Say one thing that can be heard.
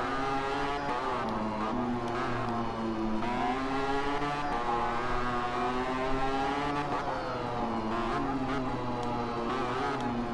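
A motorcycle engine whines loudly, its pitch rising and falling as the rider speeds up and slows for bends.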